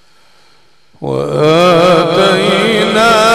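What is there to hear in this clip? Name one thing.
An elderly man chants loudly in a long, wavering melodic voice through a microphone and loudspeakers.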